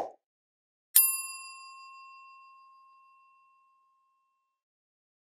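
A bell chimes once and rings out.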